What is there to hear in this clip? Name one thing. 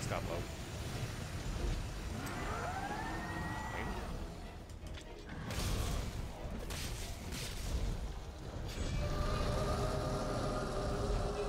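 A large beast growls deeply.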